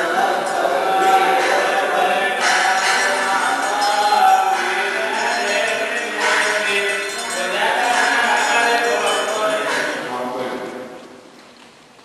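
A congregation chants together in a large echoing church.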